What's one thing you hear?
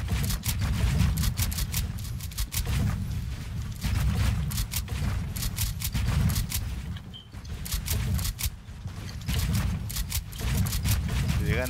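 Building pieces snap into place with quick, sharp clicks.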